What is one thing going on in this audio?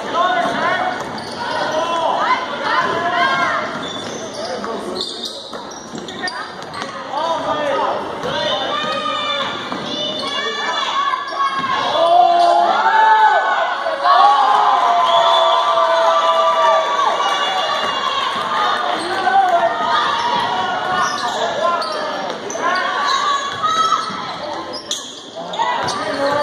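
A crowd of spectators shouts and cheers nearby in a large echoing gym.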